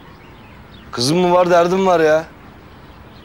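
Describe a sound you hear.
A middle-aged man speaks firmly and calmly up close.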